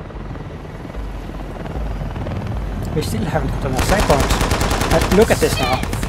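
A helicopter engine roars with a low rumble.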